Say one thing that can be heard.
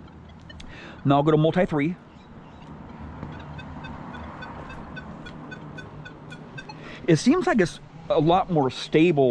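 A metal detector sounds warbling, wavering tones in short bursts.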